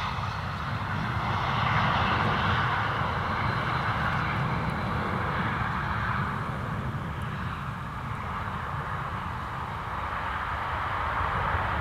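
A jet airliner's engines roar as the jet slows down on the runway.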